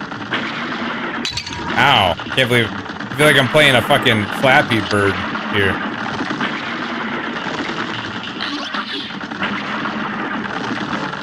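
Cartoonish game music plays steadily.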